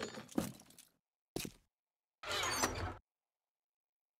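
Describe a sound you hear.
A wooden crate is opened with a short scrape.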